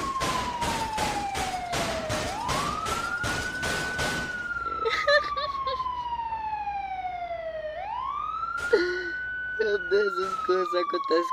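An ambulance siren wails, rising and falling in long sweeps.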